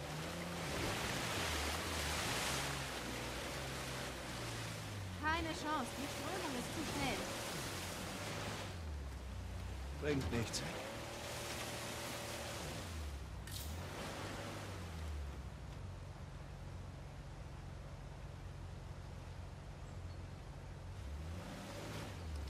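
A jeep engine rumbles and revs as it drives through water.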